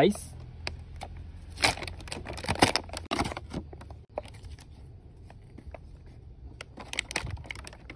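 Plastic packaging crinkles and rustles as hands open it.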